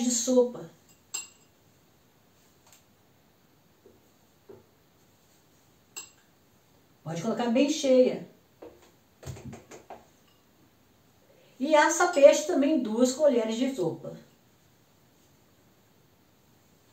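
A spoon scrapes and clinks against a ceramic bowl.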